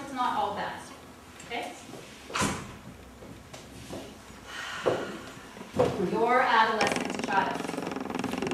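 A woman speaks calmly to an audience.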